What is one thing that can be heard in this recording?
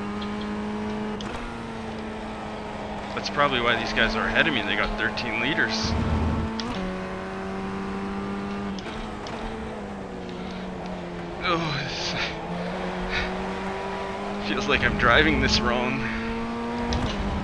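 A racing car engine whines steadily, shifting pitch as the gears change.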